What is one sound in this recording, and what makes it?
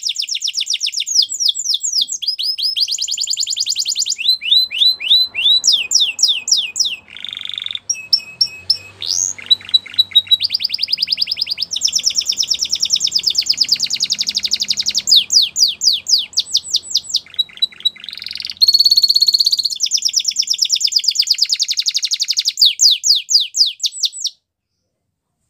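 A canary sings a long, loud song of rapid trills and chirps close by.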